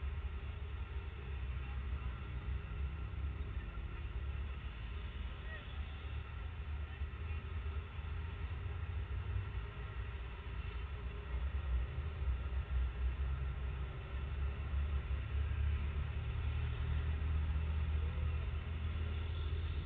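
Traffic rumbles past steadily on a busy road.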